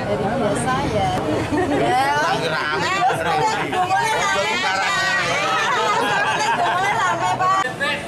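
A middle-aged woman talks warmly up close.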